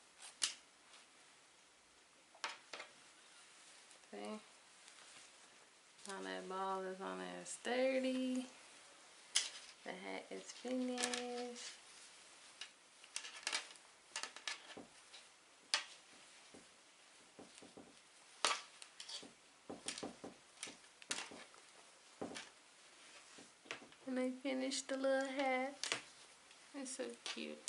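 Hands rustle and handle a knitted hat.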